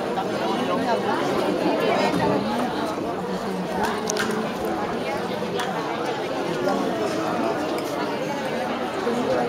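A mixed choir sings a folk song together.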